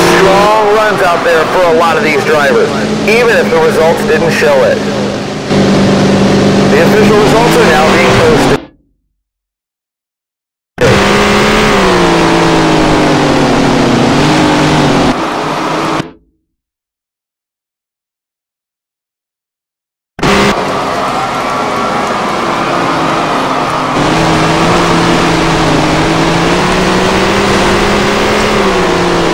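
Racing car engines roar loudly.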